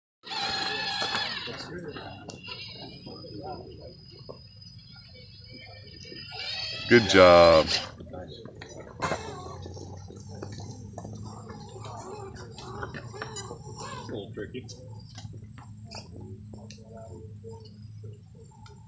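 Small electric motors whine as a model truck crawls over rocks.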